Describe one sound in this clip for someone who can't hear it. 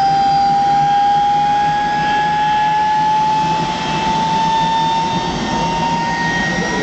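A jet engine whines loudly close by, its pitch slowly rising.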